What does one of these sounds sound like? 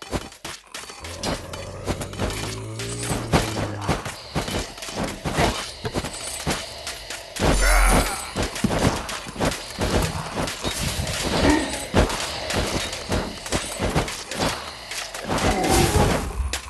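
Pickaxes clink on gold ore.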